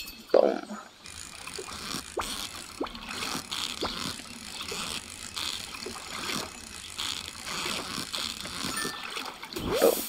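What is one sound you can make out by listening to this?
A fishing reel whirs steadily as a line is reeled in.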